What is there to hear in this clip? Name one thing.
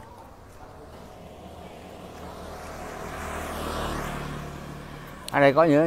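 A motor scooter approaches and passes close by, its engine rising and then fading.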